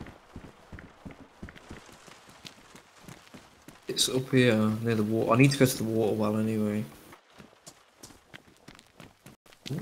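Footsteps crunch on gravel outdoors.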